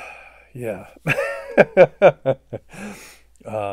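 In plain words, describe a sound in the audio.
An elderly man laughs.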